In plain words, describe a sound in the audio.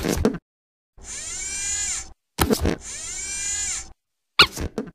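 A mechanical arm whirs as it swings.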